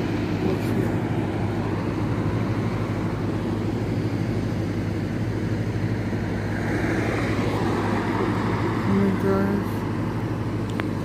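A jet airliner roars as it comes in low to land.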